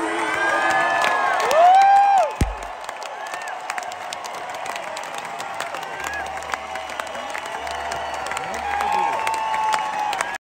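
A band plays live in a large echoing hall.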